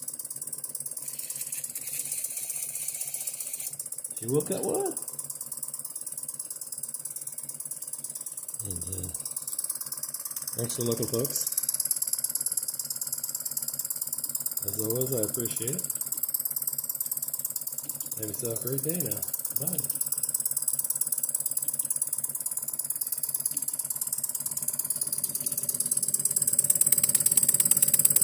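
A small steam engine hisses steadily.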